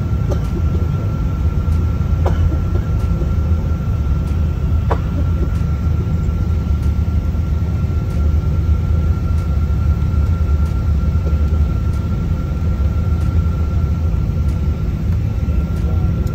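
Wheels rumble and shake over a runway.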